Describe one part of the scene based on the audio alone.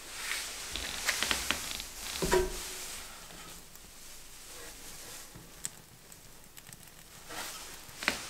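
Small pieces of coal clink and knock as a hand sets them in a grate.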